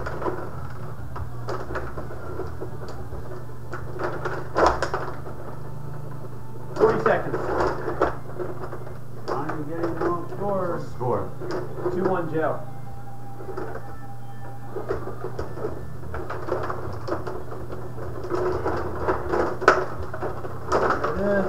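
Plastic players on a table hockey game rattle and spin as their rods are twisted.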